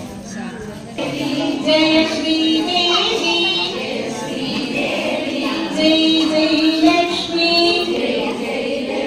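A group of women and girls sing together loudly.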